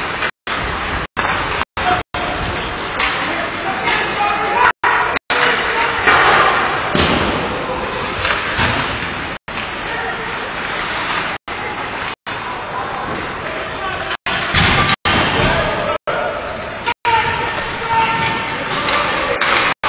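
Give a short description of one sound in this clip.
Ice hockey skates scrape and carve across ice in an echoing rink.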